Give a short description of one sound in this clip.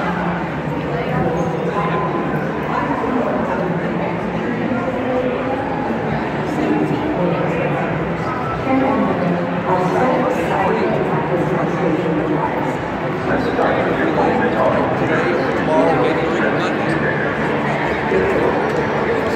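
A crowd chatters loudly, echoing in a large hall.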